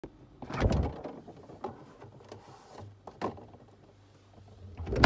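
A refrigerator door opens with a rustle of cartons.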